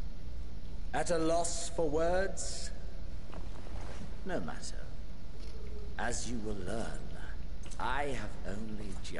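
A man speaks calmly and coldly.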